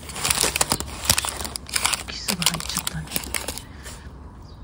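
Baking paper rustles and crinkles as hands fold it.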